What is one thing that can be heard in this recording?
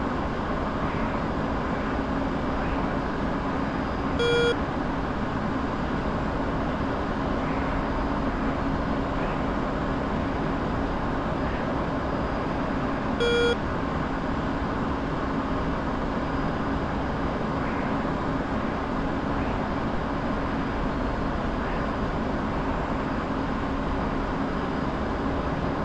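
A jet engine roars steadily throughout.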